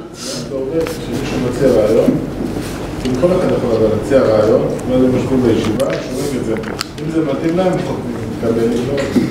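A middle-aged man speaks calmly into a nearby microphone.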